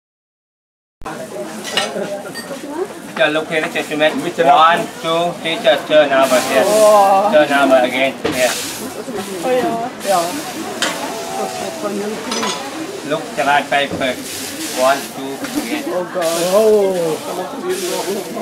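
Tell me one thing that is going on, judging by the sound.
Food sizzles in a pan.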